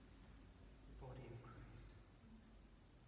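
A man speaks briefly in a low voice in a quiet echoing room.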